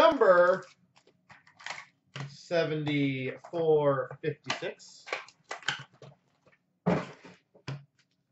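Cardboard rustles as a hand drops cards into a plastic tub.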